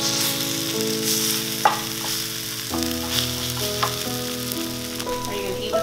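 A spatula scrapes against a pan.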